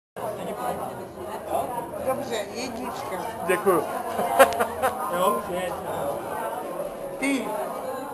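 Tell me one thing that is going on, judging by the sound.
Several people chatter and laugh nearby.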